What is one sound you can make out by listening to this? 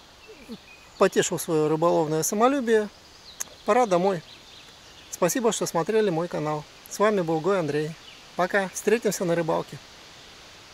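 An older man talks calmly, close by.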